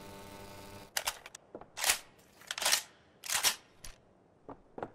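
A rifle is handled with sharp metallic clacks.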